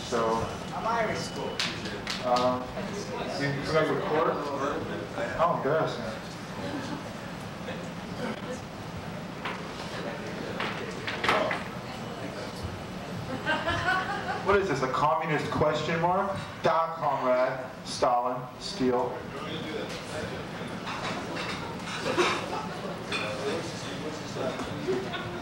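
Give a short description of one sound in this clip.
A man speaks animatedly into a microphone over loudspeakers in an echoing room.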